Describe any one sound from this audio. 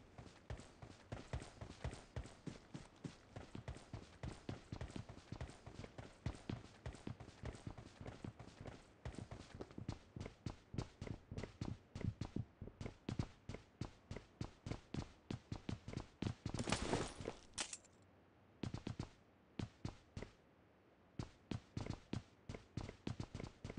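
Footsteps run quickly across hard ground and floors.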